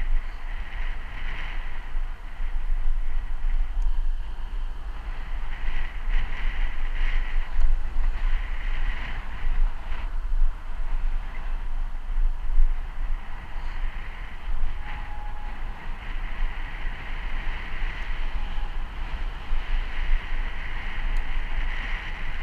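Bicycle tyres hum steadily on smooth asphalt.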